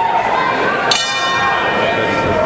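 A boxing bell rings once.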